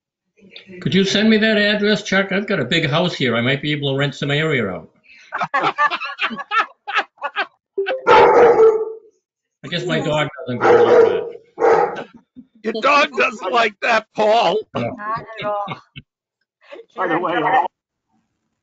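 An elderly man talks with animation over an online call.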